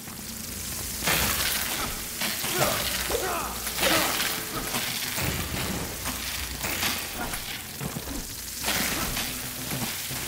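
A sword swings and strikes in a fight.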